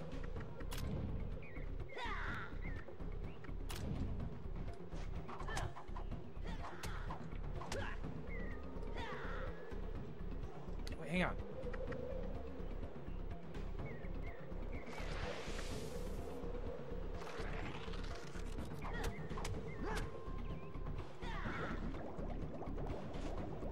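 Magic spells whoosh and sparkle in a fight.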